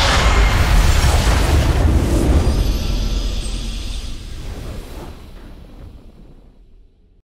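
A deep rumbling blast booms and slowly fades away.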